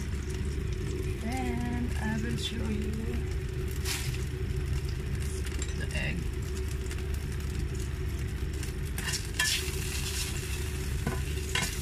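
Butter sizzles softly in a frying pan.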